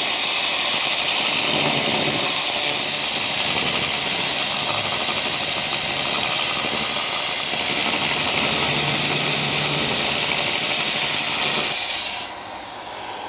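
A welding arc crackles and hisses steadily.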